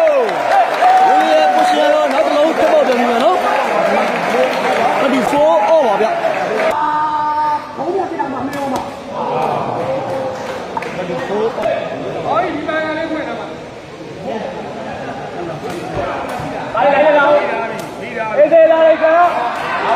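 A large crowd chatters and calls out loudly in an echoing hall.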